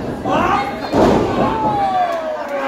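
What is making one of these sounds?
A wrestler's body slams onto the ring mat with a heavy thud.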